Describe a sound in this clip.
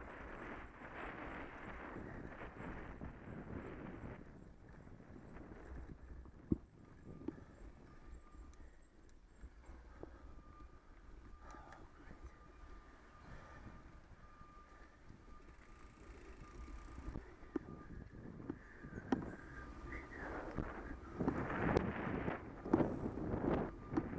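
Bicycle tyres crunch and rumble over a gravel path.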